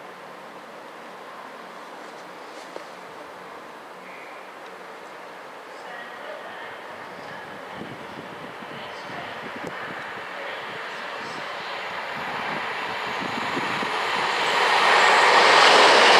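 A train approaches and rumbles past on the tracks, growing louder.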